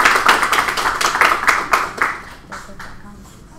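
An audience claps and applauds in a room.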